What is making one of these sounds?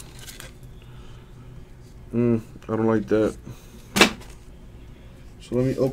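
A card slides into a stiff plastic holder with a light click.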